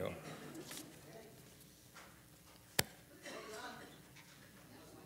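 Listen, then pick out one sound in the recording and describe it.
A man speaks quietly into a microphone in an echoing hall.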